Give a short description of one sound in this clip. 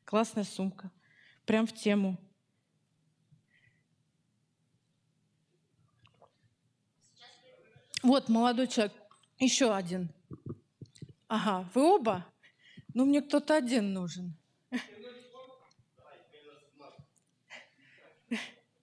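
A woman speaks with animation through a microphone in a large echoing hall.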